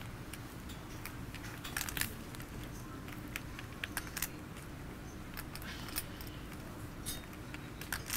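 Poker chips click together softly.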